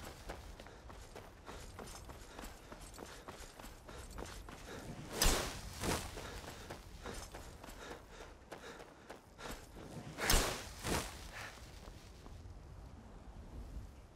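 Footsteps crunch on a stony path.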